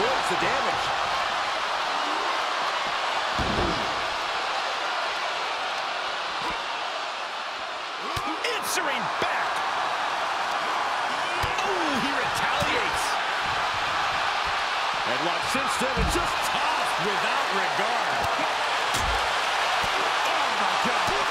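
A large crowd cheers and roars loudly in a big arena.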